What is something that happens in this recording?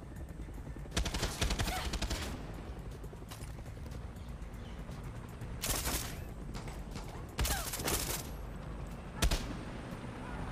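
A heavy machine gun fires loud rapid bursts.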